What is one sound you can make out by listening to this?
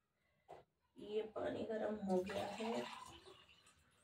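Liquid pours from a saucepan.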